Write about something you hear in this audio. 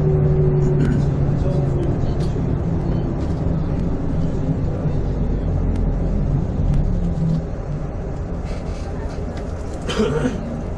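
Road noise rumbles low beneath the vehicle.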